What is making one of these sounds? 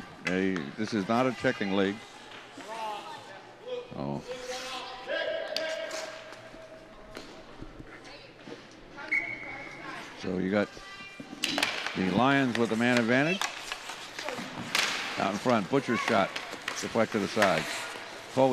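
Ice skates scrape and hiss across an ice rink.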